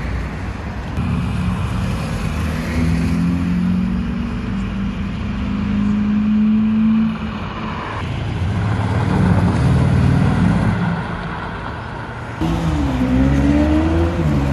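A sports car engine revs and roars loudly as it drives off.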